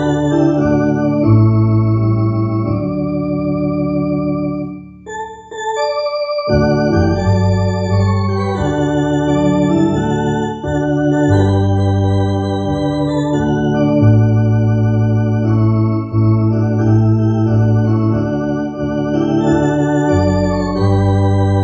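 An electronic organ plays sustained chords and a melody.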